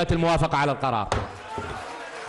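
A gavel knocks on a desk.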